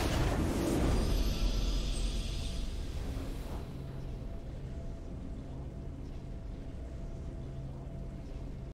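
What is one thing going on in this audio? A triumphant orchestral fanfare plays.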